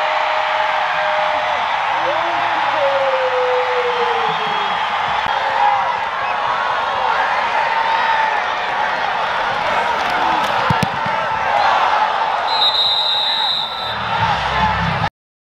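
A large crowd cheers and shouts outdoors.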